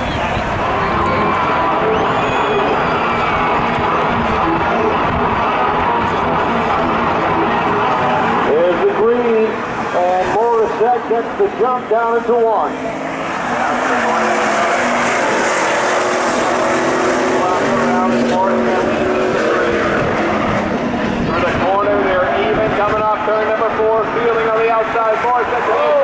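Car engines roar loudly and rev throughout.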